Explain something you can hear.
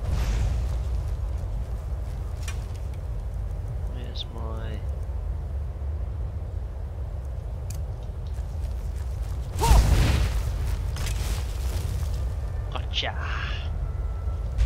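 Wind howls steadily across open snowy ground.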